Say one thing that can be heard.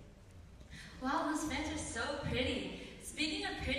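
A young woman speaks into a microphone, her voice carried through a hall's loudspeakers.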